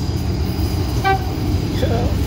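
A train horn gives a short blast.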